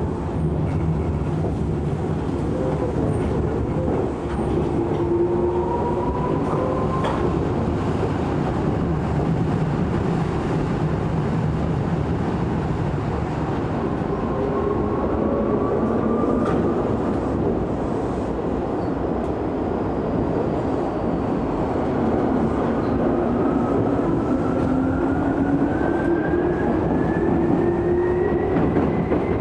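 An electric commuter train rolls along the rails, heard from inside the car.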